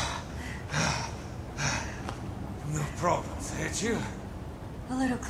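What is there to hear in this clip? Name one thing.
A man speaks in a low, strained voice.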